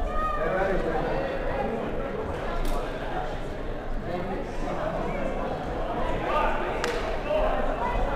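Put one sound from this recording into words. Young men call out to one another in a large echoing hall.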